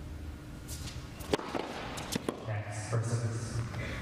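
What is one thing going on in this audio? A tennis ball is struck sharply by a racket, back and forth.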